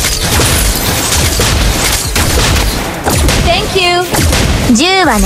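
Video game combat effects crackle and clash with rapid magical blasts and strikes.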